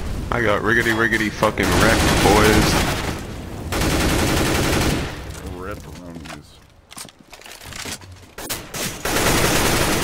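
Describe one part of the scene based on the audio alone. Rifle shots ring out in rapid bursts.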